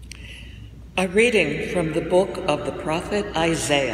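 An elderly woman reads out calmly through a microphone.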